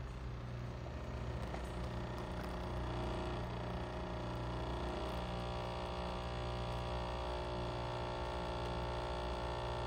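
Coffee trickles into a cup.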